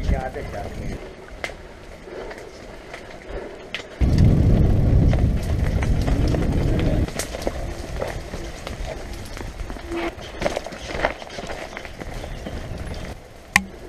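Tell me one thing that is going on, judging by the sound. Mountain bike tyres roll and rattle over a dirt trail.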